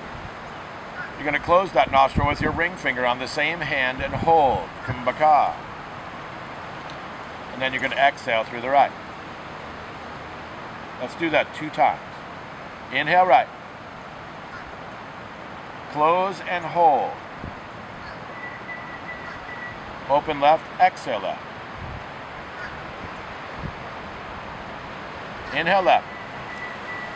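A man speaks calmly and slowly, close by.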